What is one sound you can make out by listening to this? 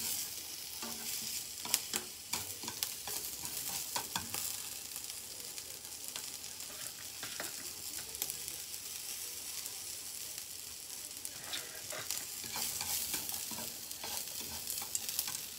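Vegetables sizzle steadily in a hot frying pan.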